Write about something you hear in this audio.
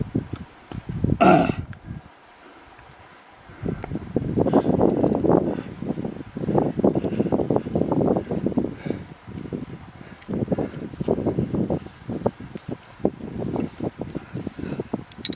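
A man breathes hard and grunts with effort close by.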